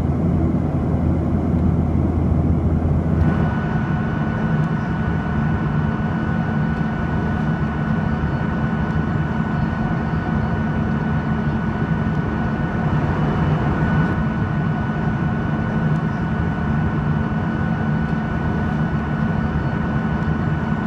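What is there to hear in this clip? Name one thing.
Jet engines roar with a steady, droning hum.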